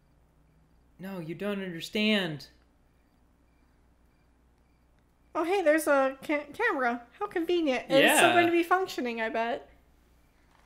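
A young woman speaks quietly and anxiously.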